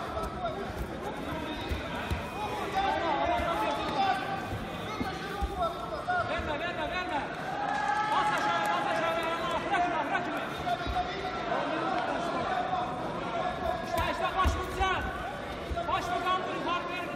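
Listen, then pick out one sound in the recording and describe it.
Two grapplers thump and scuffle on a foam mat in a large echoing hall.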